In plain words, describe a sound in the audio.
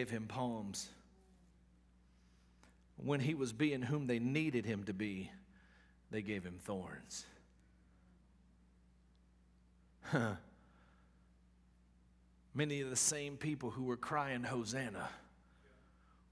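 A middle-aged man speaks calmly through a microphone, pausing between phrases.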